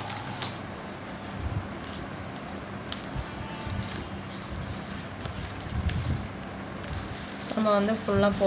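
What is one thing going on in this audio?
Plastic strips rustle and click as hands weave them.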